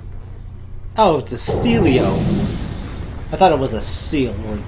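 A large creature lets out loud, wavering cries.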